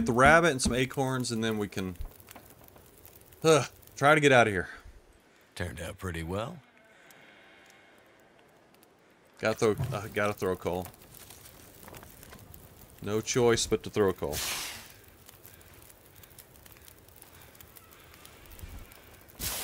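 A campfire crackles and burns.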